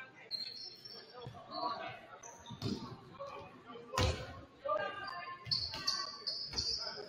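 Players shout and call to each other in a large echoing gym.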